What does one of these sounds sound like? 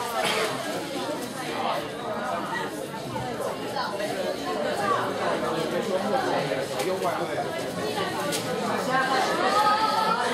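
A man speaks to an audience through a microphone in a large echoing hall.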